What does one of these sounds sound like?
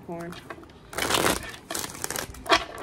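Cards riffle and flutter as they are shuffled.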